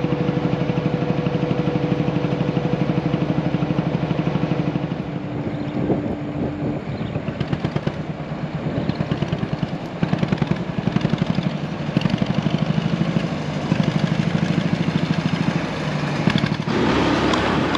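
A boat engine chugs steadily close by.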